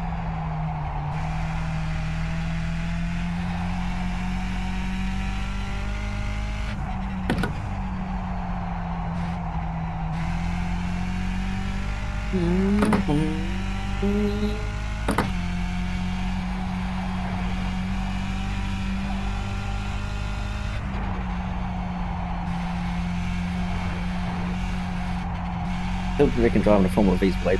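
A racing car engine drones steadily at high revs, shifting pitch as the car changes gear.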